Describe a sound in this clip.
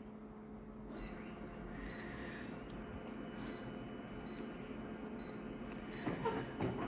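A machine gives short, high beeps as its touch panel is pressed.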